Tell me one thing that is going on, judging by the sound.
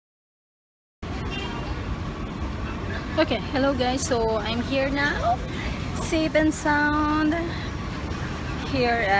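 A young woman talks close to a phone microphone in a lively, cheerful way.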